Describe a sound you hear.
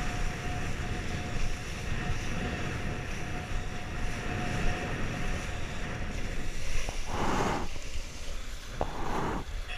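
Water rushes and splashes under a kiteboard skimming over a choppy sea.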